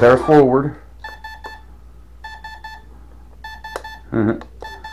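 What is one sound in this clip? A toy launcher gives off short, repeated electronic beeps.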